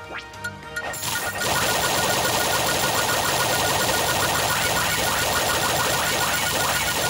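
A whooshing power-up sound plays in a video game.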